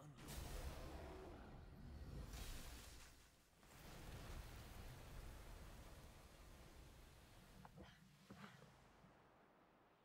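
A huge creature rumbles and roars deeply.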